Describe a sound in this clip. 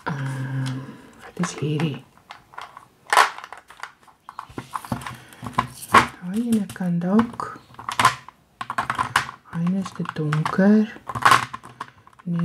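Small plastic containers click and clatter as they are handled.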